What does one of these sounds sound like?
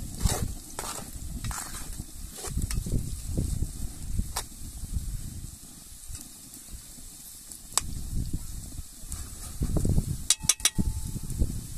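A spoon scrapes and taps against a metal pan.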